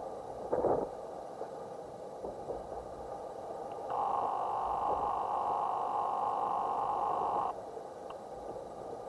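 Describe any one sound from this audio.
Wind blows faintly outdoors.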